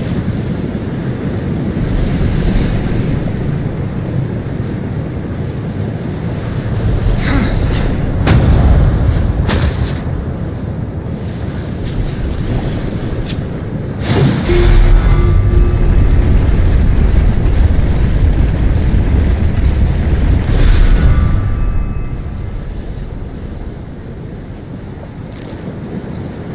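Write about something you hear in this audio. A low rumble of fire and molten lava rolls on steadily.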